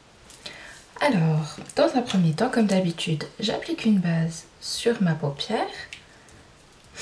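A young woman talks with animation close to the microphone.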